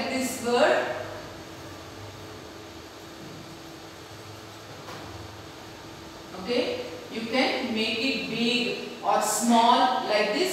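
A woman speaks calmly, a little way off in an echoing room.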